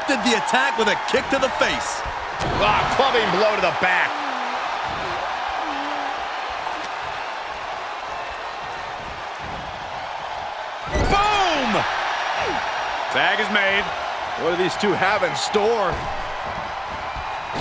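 Body blows thud and slap during a wrestling bout.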